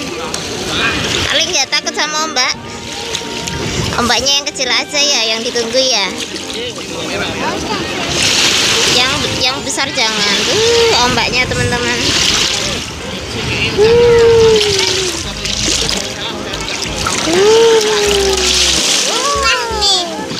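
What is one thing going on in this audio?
Small waves lap and wash against the shore.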